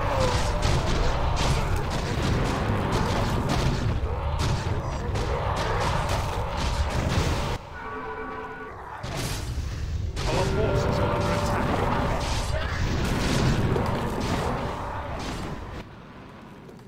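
Weapons clash and magic spells crackle in a busy battle.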